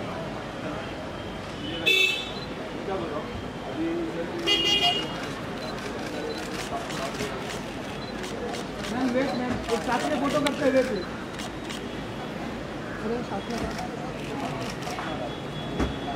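Several people talk and call out nearby outdoors.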